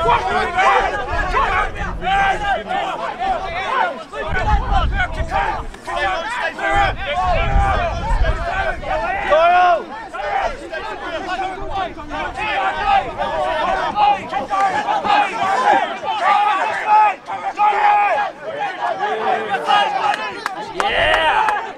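Young men shout and call out to one another outdoors.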